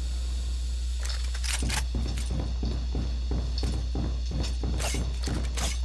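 Footsteps thud quickly and evenly on a hard floor.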